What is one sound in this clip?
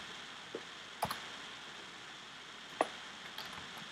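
Stone blocks are placed with short, dull knocks.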